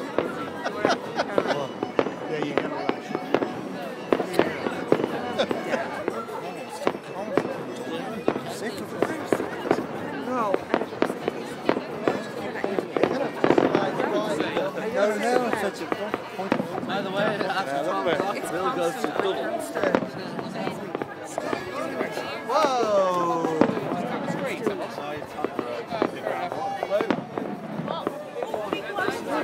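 Fireworks pop and crackle in the distance.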